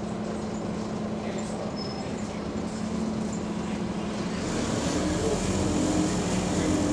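A bus engine hums steadily from inside the vehicle as it drives along.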